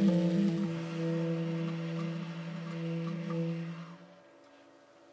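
A saxophone plays a melody.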